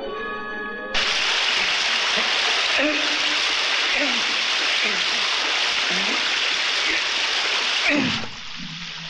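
Water gushes and sprays loudly.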